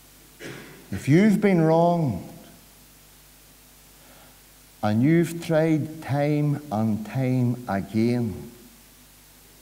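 A middle-aged man speaks slowly and deliberately through a microphone, in a room with a slight echo.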